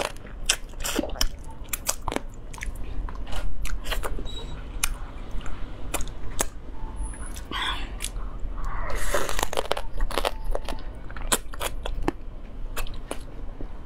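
Crispy food crunches sharply between teeth.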